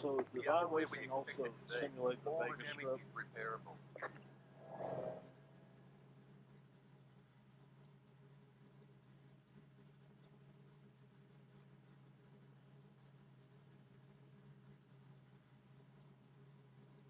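A race car engine idles with a low, steady hum.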